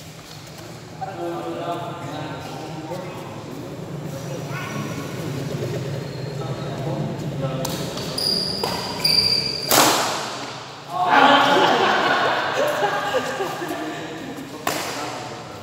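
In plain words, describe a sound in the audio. Men call out and talk loudly as they play.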